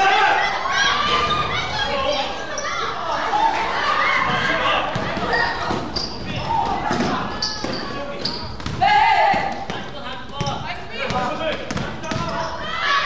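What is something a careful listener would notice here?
A crowd shouts and cheers throughout, echoing in a large hall.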